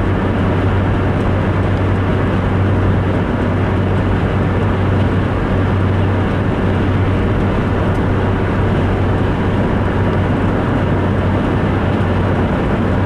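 Tyres roll on wet pavement with a steady hiss.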